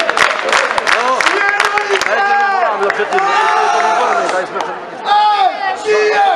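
A large crowd of men sings loudly.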